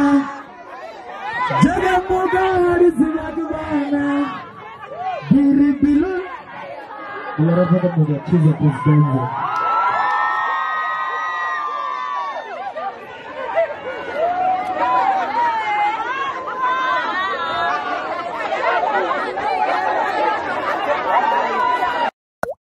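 A crowd of women chatters and shouts outdoors.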